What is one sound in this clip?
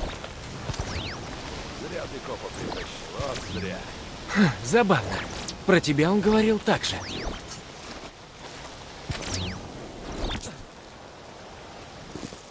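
Whooshing electronic sound effects sweep up and down.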